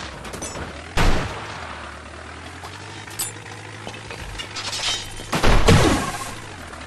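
Cars crash into each other with loud bangs.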